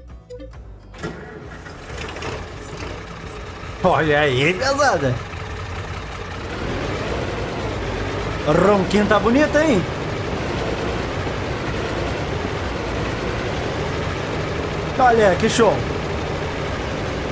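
A tractor engine rumbles steadily and revs up as the tractor drives off.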